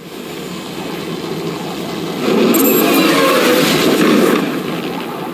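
A jet engine roars loudly as the jet passes close by.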